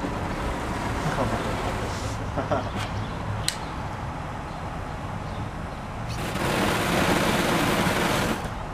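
A flamethrower bursts out with a loud roaring whoosh.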